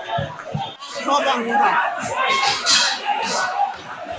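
Young men shout excitedly close by.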